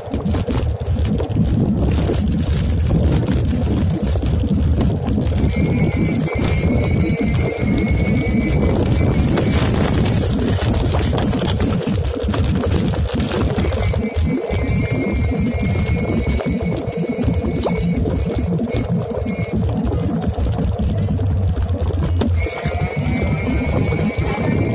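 A bicycle rattles over the pavement as it rolls along.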